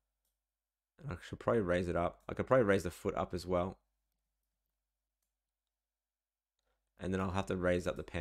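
A man speaks calmly into a close microphone.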